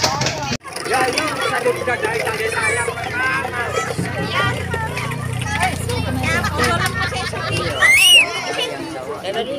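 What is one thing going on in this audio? A crowd of children and adults chatter and shout.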